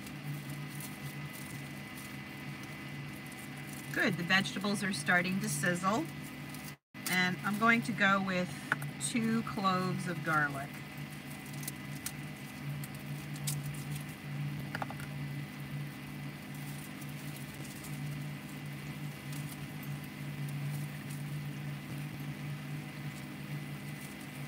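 A knife cuts through an onion.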